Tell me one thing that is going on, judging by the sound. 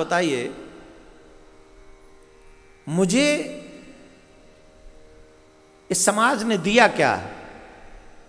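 A man sings or chants in bursts through a microphone, echoing in a large space.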